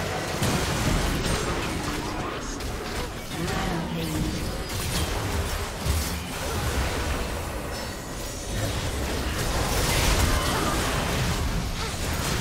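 Game weapons clash and strike in quick bursts.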